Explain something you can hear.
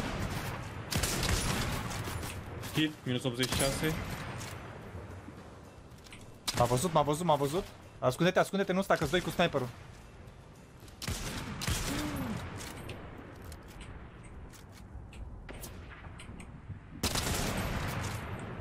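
A sniper rifle fires loud single shots with a sharp crack.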